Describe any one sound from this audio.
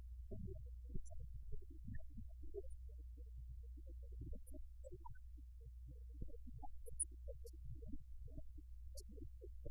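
A middle-aged man speaks calmly and steadily, nearby in a room.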